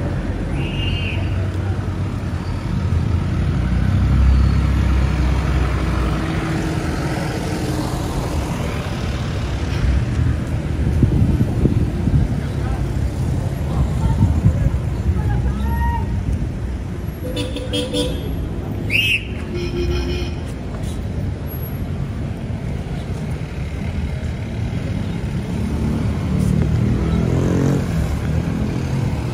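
Street traffic rumbles steadily nearby, outdoors.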